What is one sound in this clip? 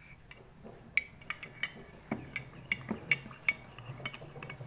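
A spoon clinks against a glass while stirring a drink.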